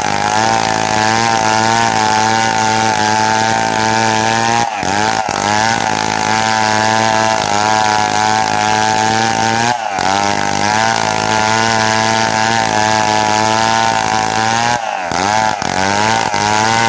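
A chainsaw at full throttle cuts through a log.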